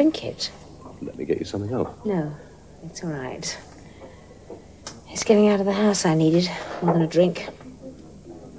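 A woman speaks quietly and earnestly nearby.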